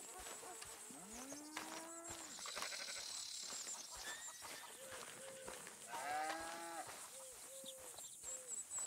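Boots step steadily through dry grass.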